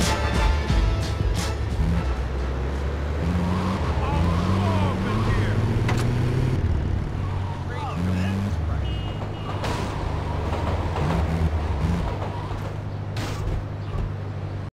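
A van engine hums and revs as it drives.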